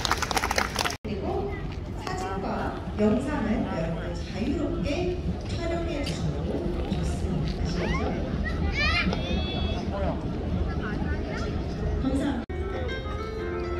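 A crowd murmurs in the open air.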